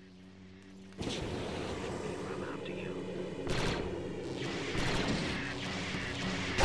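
A jetpack roars with a rushing thrust.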